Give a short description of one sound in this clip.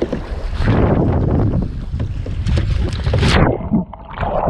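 A paddle splashes in water close by.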